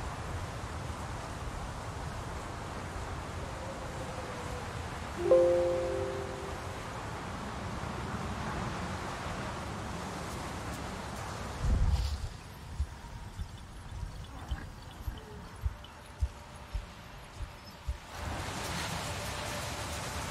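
A soft wind blows outdoors.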